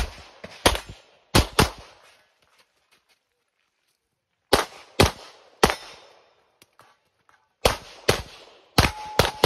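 Pistol shots ring out in quick pairs outdoors, echoing off nearby hills.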